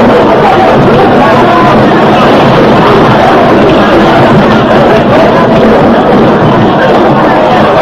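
A crowd of men shouts during a brawl.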